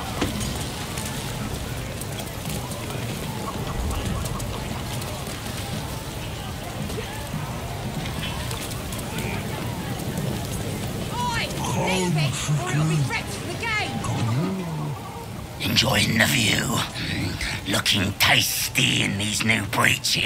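Fire crackles.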